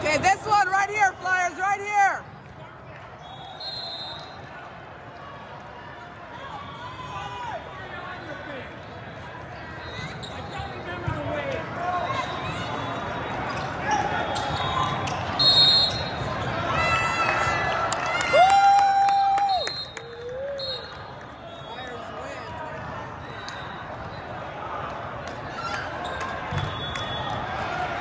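A volleyball thuds off players' hands and arms.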